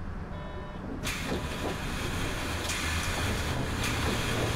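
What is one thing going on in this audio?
Pneumatic bus doors hiss open.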